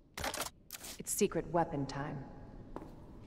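A young woman speaks calmly in a low voice.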